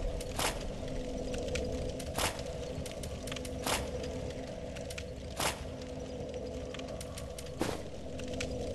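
Soft menu clicks sound every second or two.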